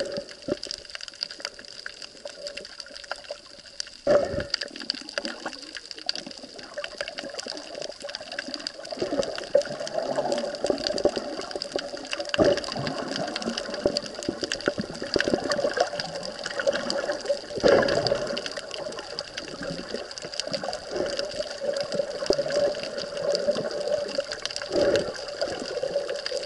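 Water rumbles and crackles, heard from underwater.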